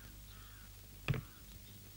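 A briefcase thumps down on a desk.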